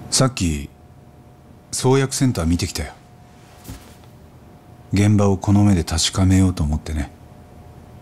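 A young man speaks calmly and earnestly, close by.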